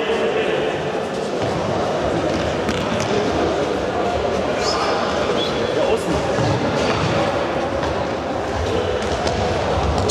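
A ball thuds as it is kicked, echoing in a large hall.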